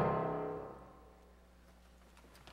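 A choir sings its last note in a large hall, and the note fades out.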